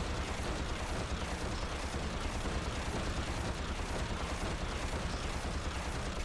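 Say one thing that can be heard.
Rockets burst in loud explosions.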